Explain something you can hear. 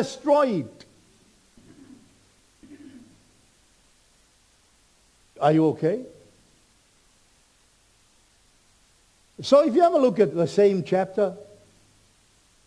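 A man speaks slowly and deliberately into a microphone, with long pauses.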